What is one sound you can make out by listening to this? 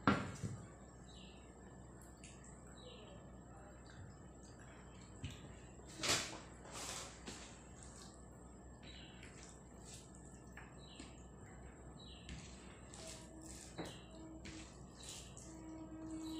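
Fingers squish and mix rice on a plate.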